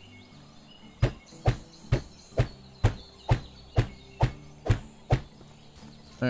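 A wooden mallet knocks repeatedly on timber at a steady pace.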